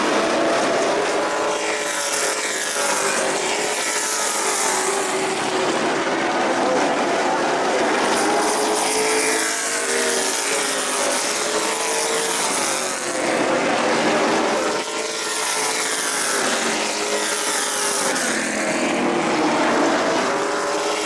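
A pack of race car engines roars loudly, rising and falling in pitch as the cars pass.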